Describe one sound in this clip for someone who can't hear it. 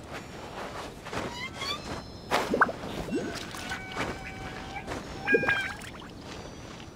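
Footsteps patter quickly across a tiled roof.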